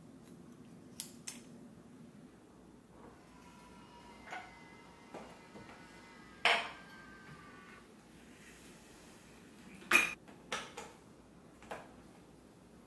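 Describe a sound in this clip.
A glass cup clinks against a hard counter.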